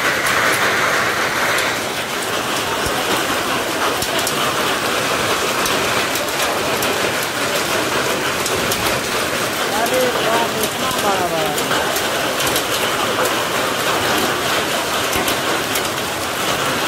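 Hailstones clatter and tick on hard surfaces.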